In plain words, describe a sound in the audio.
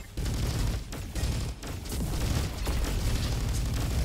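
A small explosion bursts with a puff.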